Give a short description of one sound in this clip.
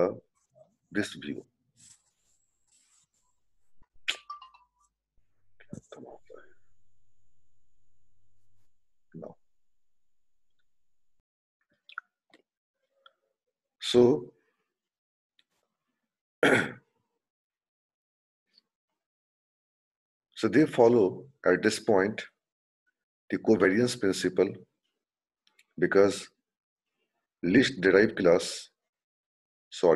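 A young man speaks calmly through an online call microphone, in short bursts with pauses.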